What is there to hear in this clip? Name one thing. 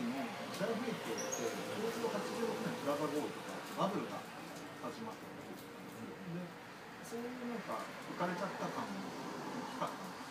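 Young men talk calmly nearby in a small room.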